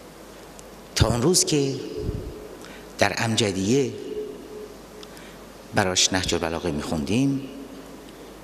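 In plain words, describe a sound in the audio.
A middle-aged man speaks forcefully into a microphone in short bursts.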